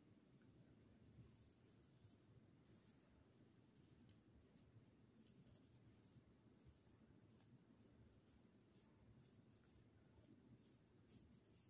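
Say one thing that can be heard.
A paintbrush swishes softly across paper.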